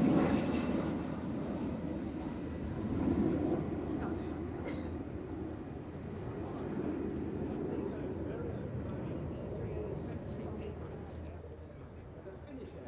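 Jet engines roar overhead and slowly fade into the distance.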